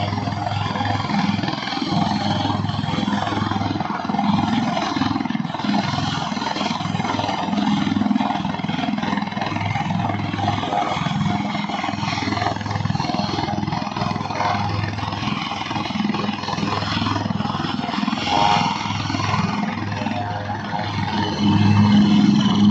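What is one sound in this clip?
A helicopter's rotor beats with a steady thumping.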